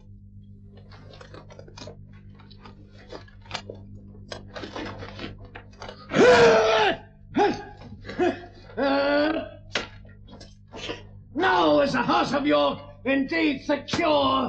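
Armour clinks as men move.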